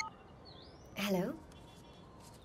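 A young woman speaks softly into a phone.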